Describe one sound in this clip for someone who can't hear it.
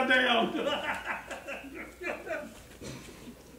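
A man speaks forcefully.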